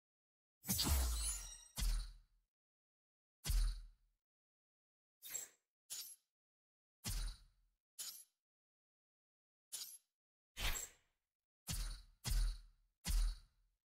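Short electronic menu sounds chime and whoosh with each selection.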